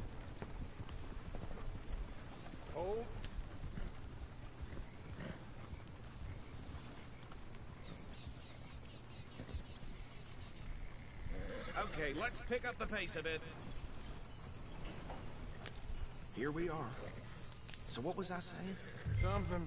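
A wagon rolls and rattles over a rough dirt track.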